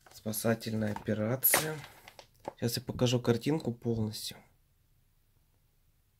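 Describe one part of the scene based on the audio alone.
A glossy magazine rustles as it is handled.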